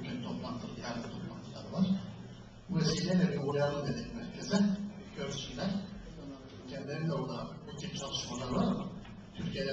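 An older man speaks with animation into a microphone over loudspeakers in an echoing room.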